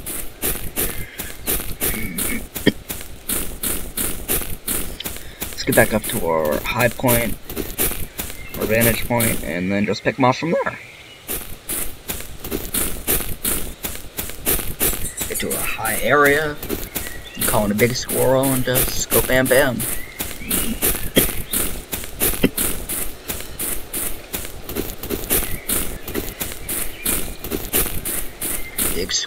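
Footsteps crunch steadily through leaves and grass.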